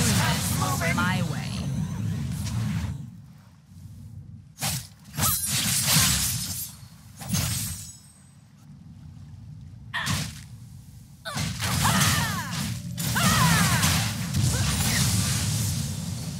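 Magical attacks whoosh and crackle in bursts.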